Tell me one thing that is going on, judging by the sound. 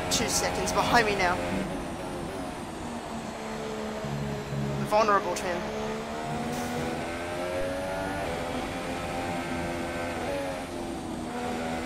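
A racing car engine screams at high revs, rising and falling with each gear change.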